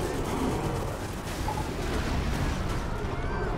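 Heavy thuds and crashes sound as a figure leaps and lands.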